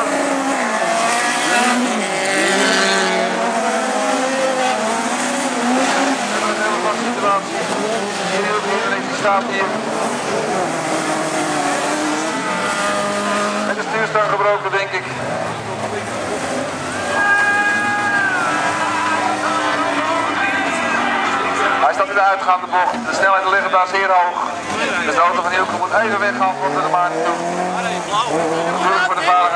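Many car engines roar and rev loudly close by.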